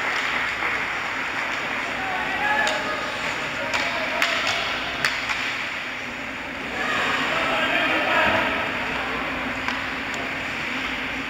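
Skate blades scrape across the ice.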